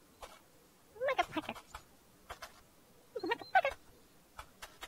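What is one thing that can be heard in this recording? A small toy rattles and squeaks as it is pushed.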